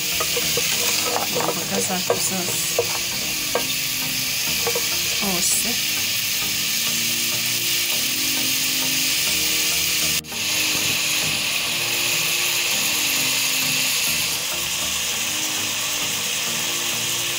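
Vegetables sizzle steadily in a hot pot.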